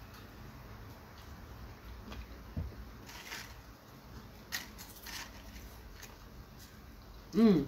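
A woman crunches crisps while chewing.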